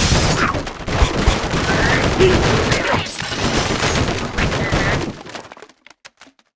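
Wooden and stone blocks crash and tumble as a structure collapses in a game.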